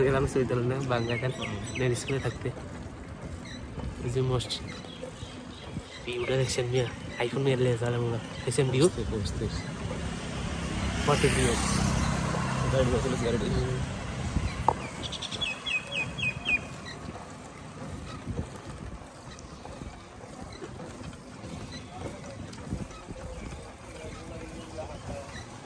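A cycle rickshaw rolls along a paved road.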